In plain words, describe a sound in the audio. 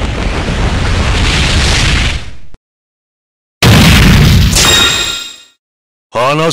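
A rushing burst of energy roars and flares up.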